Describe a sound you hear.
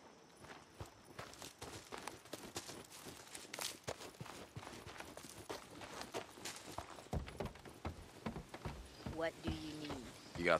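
Footsteps run quickly over ground and wooden boards.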